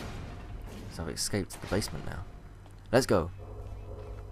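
A heavy metal door swings open with a creak.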